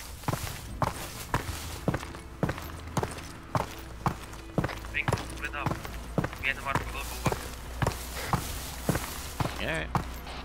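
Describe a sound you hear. Footsteps crunch steadily on dry dirt.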